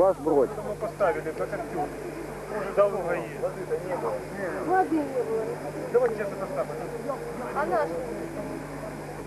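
Several young people talk and call out with animation nearby.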